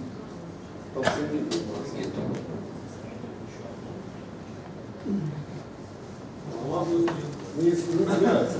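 A man speaks to an audience, his voice carrying from a distance.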